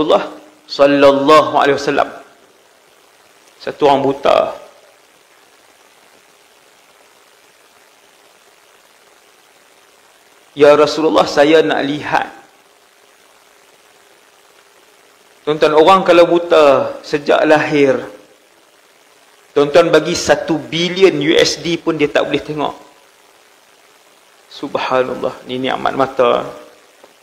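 A man speaks calmly into a close microphone, in short phrases with long pauses.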